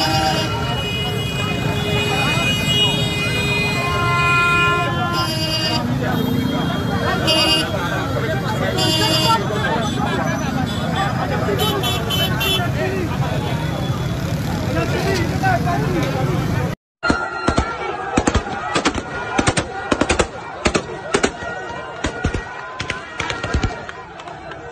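A crowd shouts and cheers outdoors.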